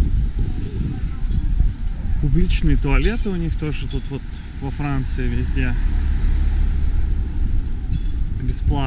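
Wind blusters across the microphone outdoors.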